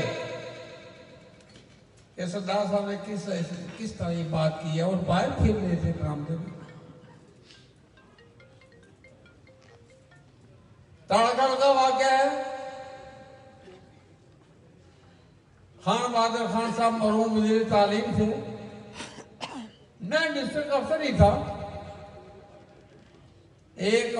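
An elderly man speaks with emphasis into a microphone, heard through loudspeakers with a ringing echo, in bursts separated by pauses.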